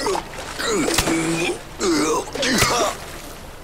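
A body thuds heavily onto a hard floor.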